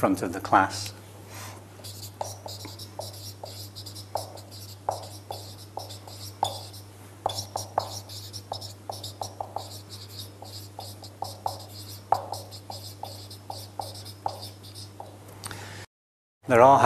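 A marker squeaks and taps as it writes on a whiteboard.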